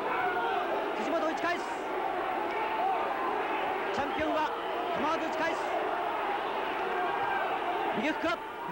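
Boxing gloves thud against bodies in quick bursts.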